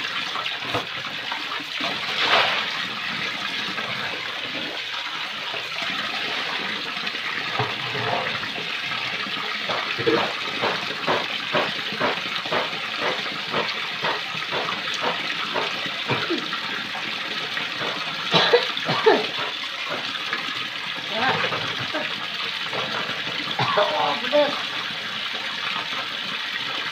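Water runs steadily from a tap into a basin.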